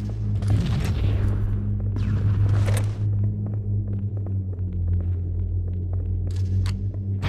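Pistol shots crack with a ringing echo.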